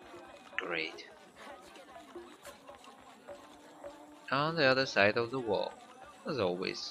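Footsteps patter on dirt and stone.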